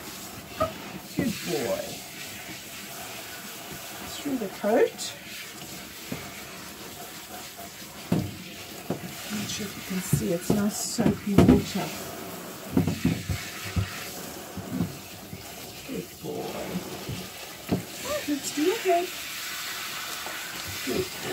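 Water sprays from a shower head onto a dog's coat.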